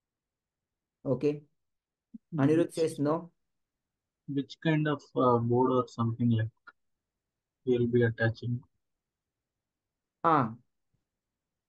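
A man speaks calmly in short phrases over an online call.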